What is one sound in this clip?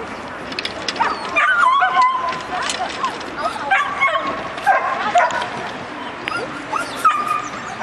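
A woman calls out sharp commands to a dog outdoors.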